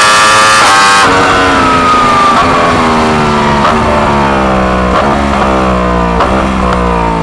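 A racing car engine drops in pitch, shifting down.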